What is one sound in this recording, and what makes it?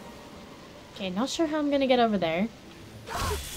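A young woman speaks close by with animation.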